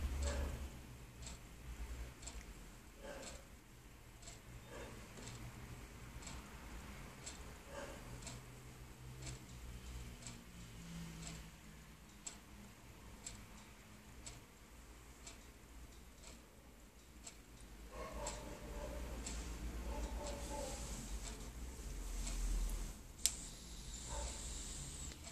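Fingers fiddle softly with a small piece of wire.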